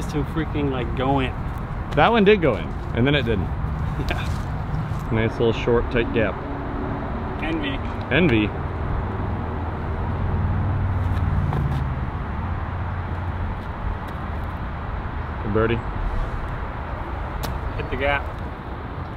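A young man talks casually and close by.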